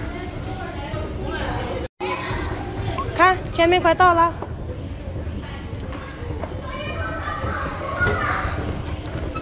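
An escalator hums and rumbles steadily.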